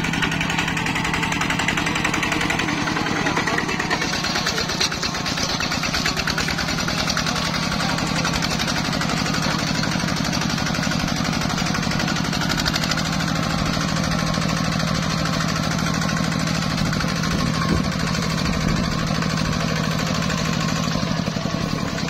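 A small diesel engine chugs steadily up close.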